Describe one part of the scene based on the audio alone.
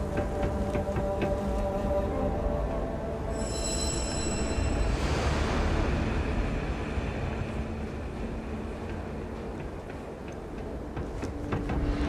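Footsteps thud quickly on a hard metal floor.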